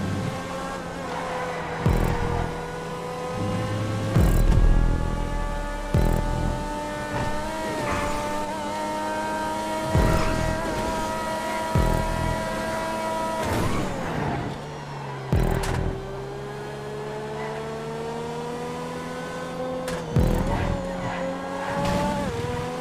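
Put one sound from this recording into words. A sports car engine roars steadily at high revs, dropping briefly between gear changes.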